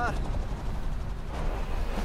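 A helicopter whirs overhead.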